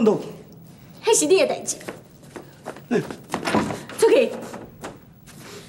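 A woman speaks sharply and with animation.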